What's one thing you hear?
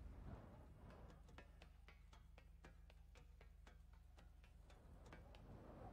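Hands and feet clank on a metal ladder during a climb.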